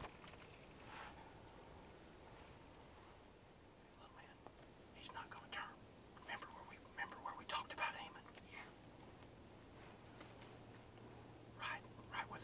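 A deer's hooves rustle dry leaves as it steps slowly across the ground.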